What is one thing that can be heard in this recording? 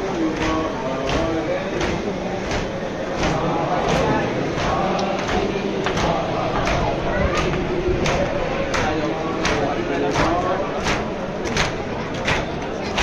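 A crowd of men beats their chests in a steady rhythm.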